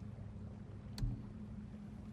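A soft electronic click sounds as a menu option is selected.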